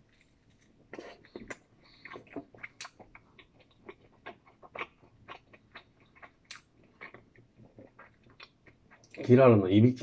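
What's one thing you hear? A man chews food with small wet clicks.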